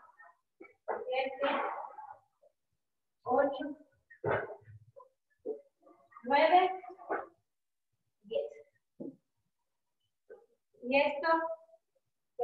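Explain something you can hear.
A young woman talks in short bursts nearby.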